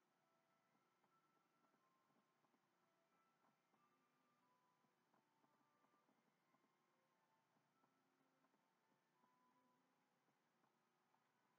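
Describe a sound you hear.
Soft music with chiming notes plays through a television speaker.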